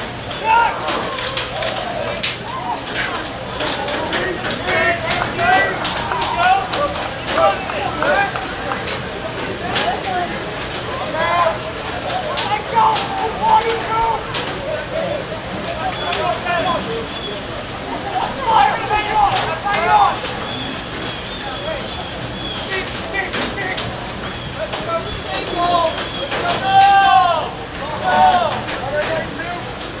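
Lacrosse sticks clack against each other.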